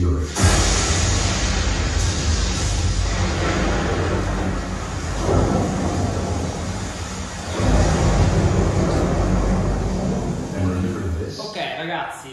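Loud, deep rumbling sound plays from speakers.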